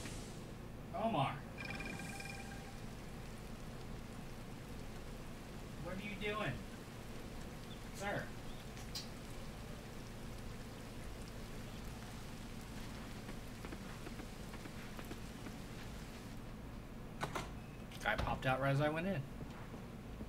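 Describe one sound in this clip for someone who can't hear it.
A young man talks now and then into a nearby microphone, in short casual remarks.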